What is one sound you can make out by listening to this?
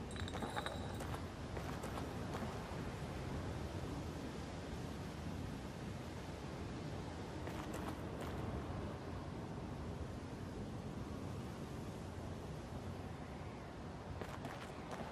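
Footsteps crunch slowly over gravel and dirt.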